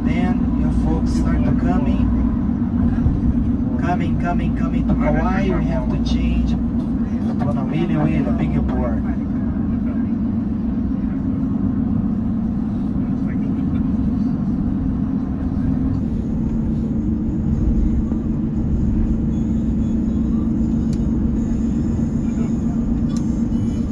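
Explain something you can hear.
A car drives along a road with a steady low rumble of engine and tyres.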